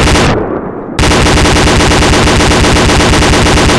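A heavy machine gun fires rapid bursts.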